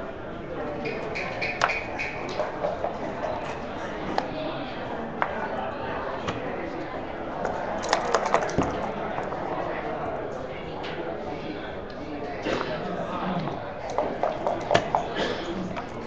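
Backgammon checkers click and clack as they are moved on a wooden board.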